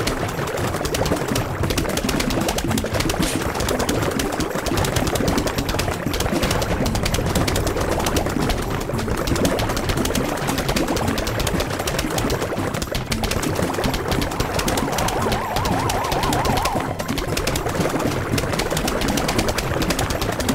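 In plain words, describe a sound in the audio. Game plants fire a rapid, steady stream of popping shots.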